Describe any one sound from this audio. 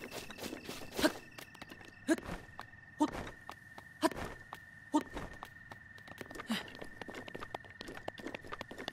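Hands and boots thump against rock while climbing.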